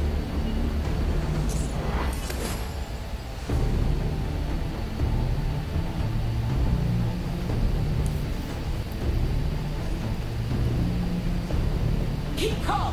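Upbeat game music plays steadily.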